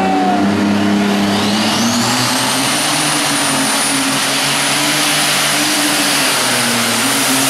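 A high engine whine climbs steeply and then holds.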